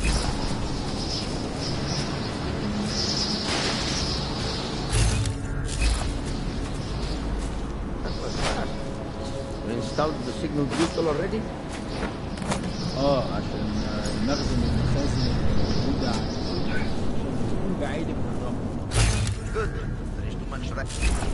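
Footsteps tread over a hard floor.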